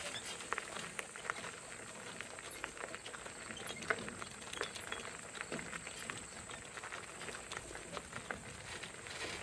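Wheels crunch over gravel.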